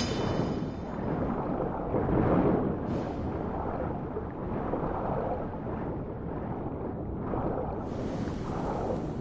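Water swirls and churns in a low, muffled underwater rumble.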